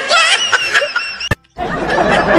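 A middle-aged man laughs heartily into a microphone.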